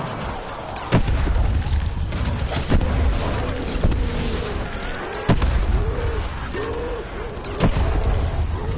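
A heavy weapon fires booming blasts.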